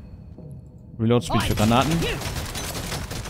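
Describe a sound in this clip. A bright game chime rings out as a level is gained.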